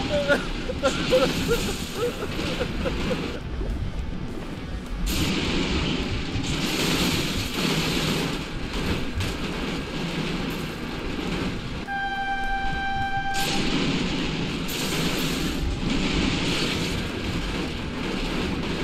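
Heavy metal vehicles crash and scrape together with loud clanks.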